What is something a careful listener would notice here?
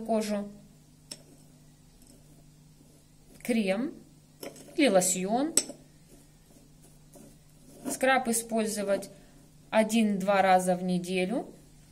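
A metal spoon scrapes and stirs in a ceramic bowl.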